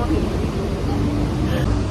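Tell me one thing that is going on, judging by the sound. A young woman laughs and talks cheerfully close by.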